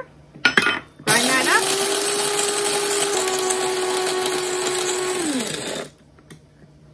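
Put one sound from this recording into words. An electric grinder whirs loudly, then spins down.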